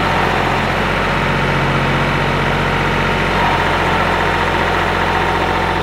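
A riding mower's engine runs loudly and steadily close by.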